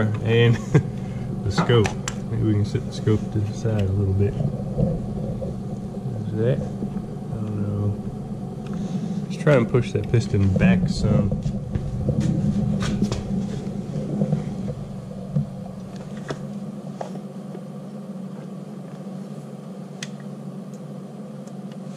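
A small handheld device clicks and rattles as it is handled.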